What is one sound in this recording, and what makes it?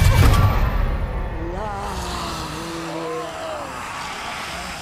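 An elderly woman snarls and shrieks loudly.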